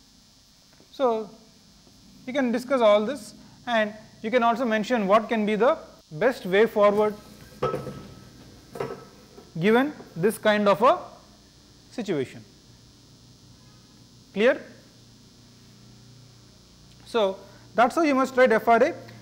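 A man speaks clearly through a microphone, lecturing with pauses.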